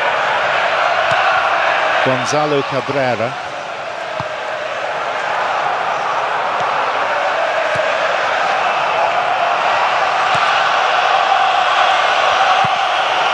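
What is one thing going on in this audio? A large stadium crowd murmurs and cheers steadily throughout.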